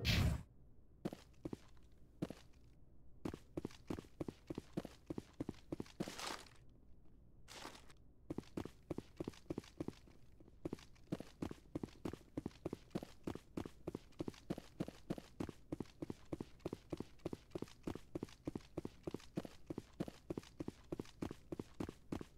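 Footsteps run quickly across a hard metal floor.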